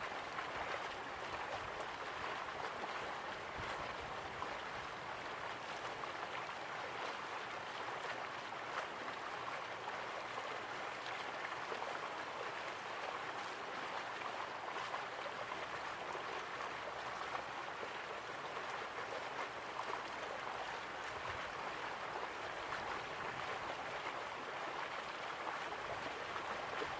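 Water rushes steadily down a waterfall.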